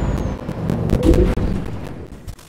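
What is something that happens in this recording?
A heavy crash bangs loudly.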